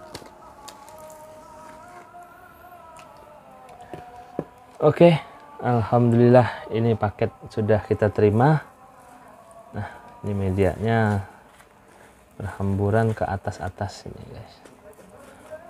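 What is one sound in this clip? Dry shredded tobacco rustles softly as hands pour and pack it.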